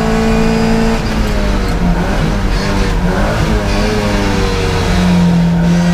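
A classic Mini's racing engine drops and rises in revs through gear changes.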